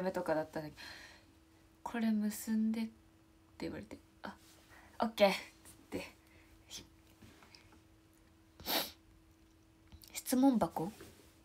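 A young woman talks close to a microphone, with animation and pauses.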